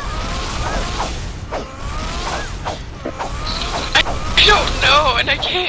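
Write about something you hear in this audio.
Swords clash and whoosh in quick blows.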